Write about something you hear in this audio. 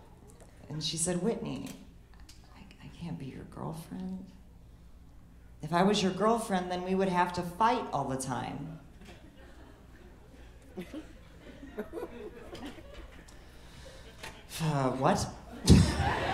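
A young woman speaks into a microphone with a lively, comic delivery.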